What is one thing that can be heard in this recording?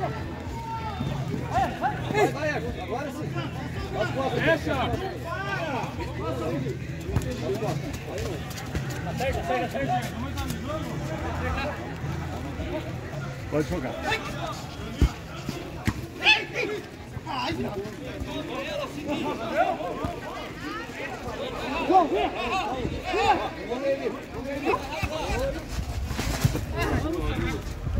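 Men shout and call out across an outdoor pitch.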